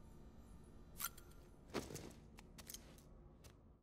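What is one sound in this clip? Footsteps sound softly on a hard floor.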